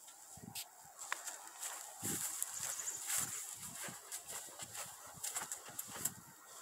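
Footsteps crunch on dry grass outdoors.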